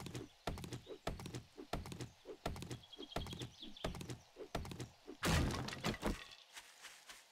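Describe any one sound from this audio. A stone axe chops repeatedly into a wooden stump.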